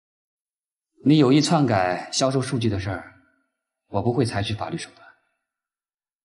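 A man speaks calmly and seriously nearby.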